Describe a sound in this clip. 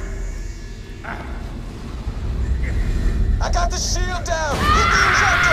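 A sci-fi energy weapon fires with whining, zapping bursts.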